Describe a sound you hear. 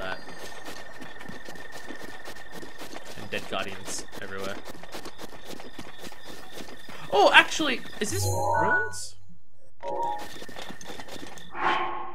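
Footsteps run across soft ground.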